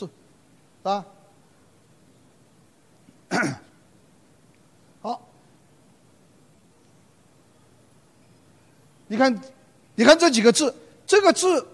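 An elderly man lectures through a microphone, speaking in short bursts with pauses.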